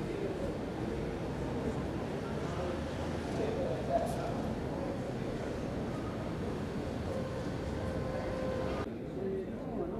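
An escalator hums and rumbles steadily in a large echoing hall.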